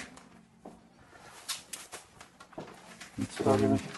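Plastic wrapping crinkles as bundles are handled.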